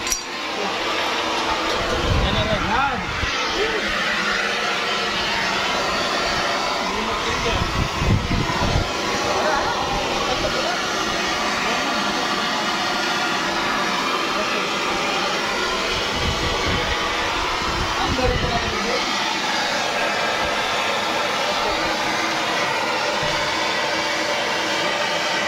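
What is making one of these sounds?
A large engine runs loudly and steadily close by.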